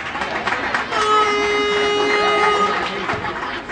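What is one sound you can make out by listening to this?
A referee's whistle blows with a long, steady shrill note.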